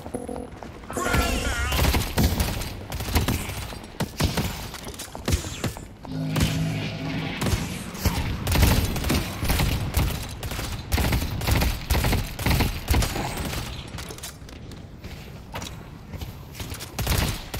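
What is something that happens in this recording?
Gunshots fire rapidly in bursts.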